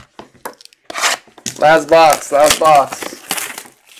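A card pack's foil wrapper crinkles as it is torn open.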